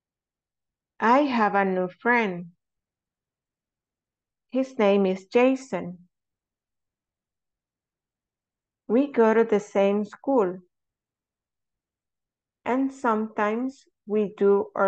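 A woman speaks clearly through an online call in short phrases with pauses between them.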